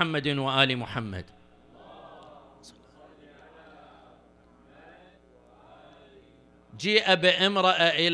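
An elderly man speaks with emotion into a microphone, in a rising and falling chanting tone.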